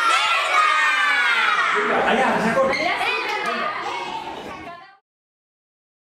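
A group of children cheer and shout excitedly.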